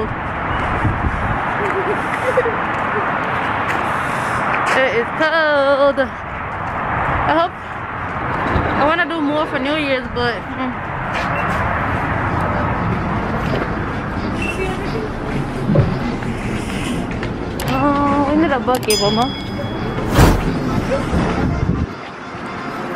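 A young woman talks close by.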